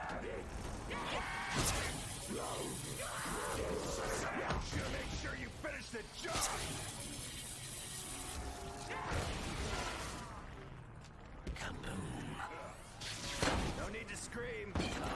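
Monsters growl and snarl up close.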